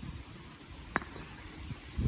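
A kettlebell thuds down onto pavement.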